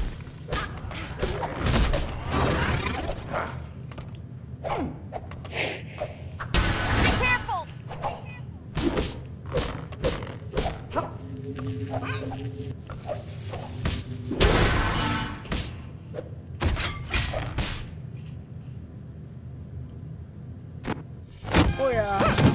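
Game figures clash with quick hits and zaps.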